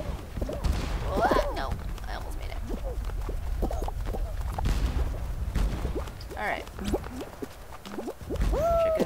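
Cartoonish game characters squeak and chirp with short sliding cries.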